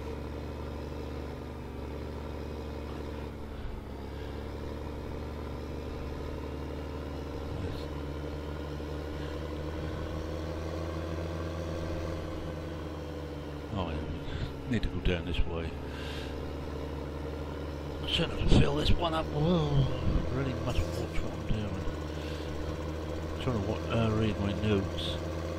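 A tractor engine hums steadily as it drives along.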